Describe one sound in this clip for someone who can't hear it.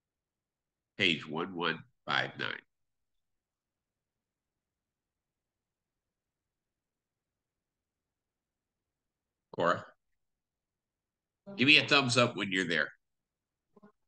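A man speaks in short bursts over an online call, with long silences between.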